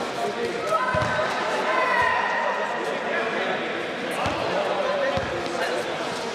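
A basketball bounces on a hard court in an echoing hall.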